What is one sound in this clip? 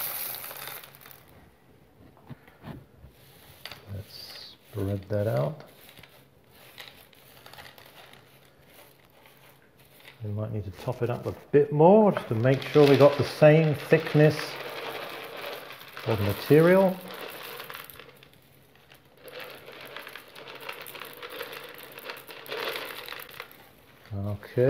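Dry chickpeas rustle and rattle under hands being spread in a dish.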